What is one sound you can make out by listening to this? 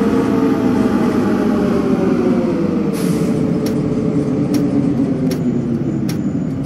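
A bus engine hums steadily, its pitch slowly dropping.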